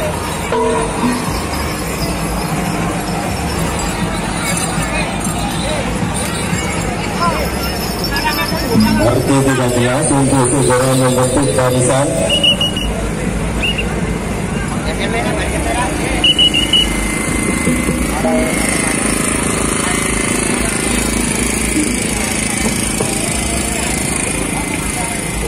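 A gamelan ensemble of gongs and drums plays loudly outdoors.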